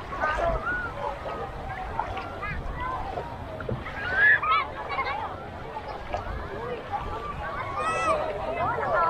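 A crowd of people chatters and calls out at a distance outdoors.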